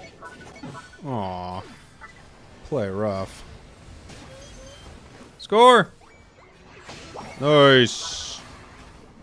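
Game sound effects whoosh and chime loudly.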